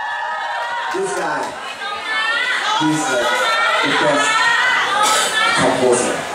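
A second young man sings along into a microphone.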